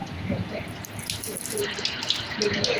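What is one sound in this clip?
Water pours and splashes onto a metal plate.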